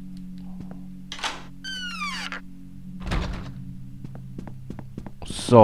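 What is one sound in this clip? Soft game music plays steadily.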